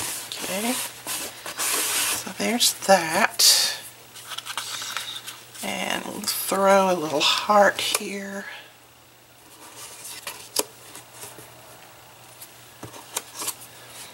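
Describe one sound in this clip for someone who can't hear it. Tissue paper crinkles and rustles.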